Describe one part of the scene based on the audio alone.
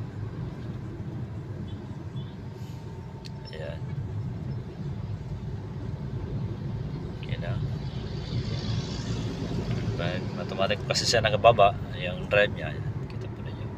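A small petrol SUV drives along, with engine and road noise heard from inside the cabin.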